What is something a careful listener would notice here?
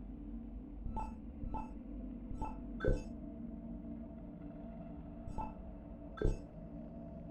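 Soft clicks sound as a game menu is moved through.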